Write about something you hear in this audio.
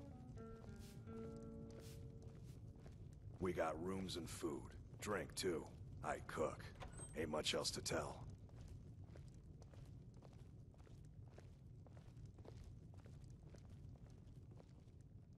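Footsteps walk across a stone floor.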